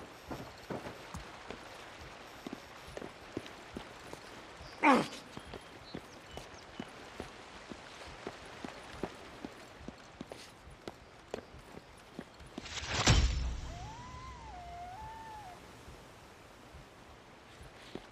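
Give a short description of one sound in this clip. Footsteps thud on a hard floor, one after another.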